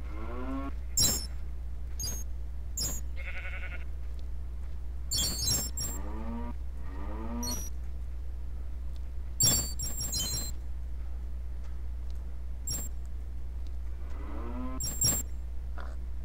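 A skeleton rattles its bones in short clattering bursts.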